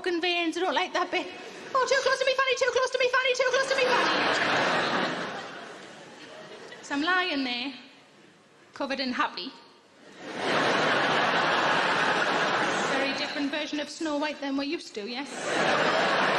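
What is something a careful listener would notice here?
A young woman sings and speaks into a microphone.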